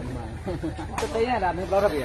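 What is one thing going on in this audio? A fighter's kick slaps against skin.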